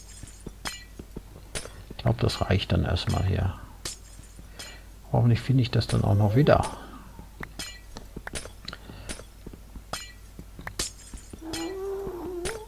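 Blocks are dug with quick, repeated tapping and cracking sounds.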